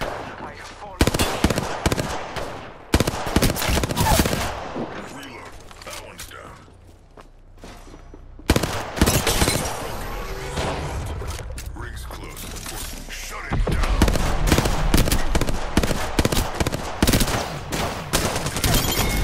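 Gunshots fire in rapid bursts, close by.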